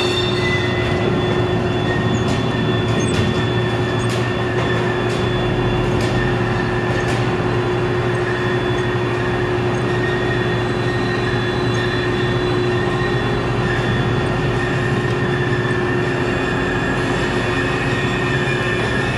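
An electric hoist motor hums steadily in a large echoing hall.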